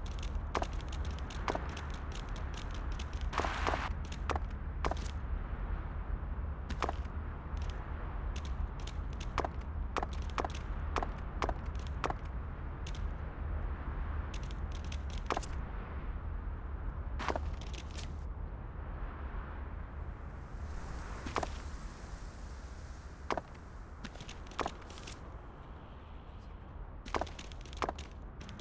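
A goat's hooves clatter on hard ground.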